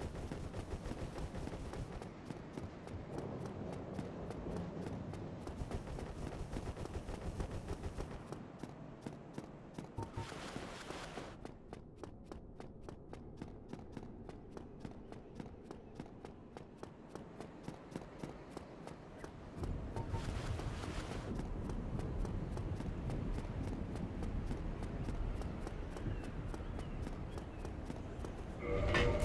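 Quick footsteps run on stone.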